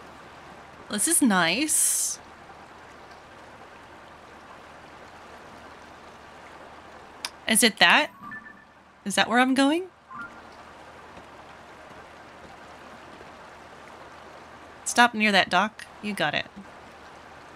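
A young woman talks into a close microphone with animation, in short bursts.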